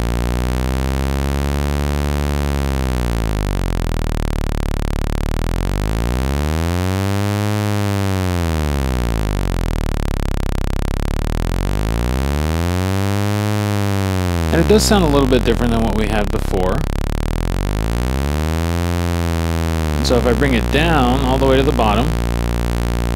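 A synthesizer drones with a buzzy tone that slowly sweeps up and down in brightness.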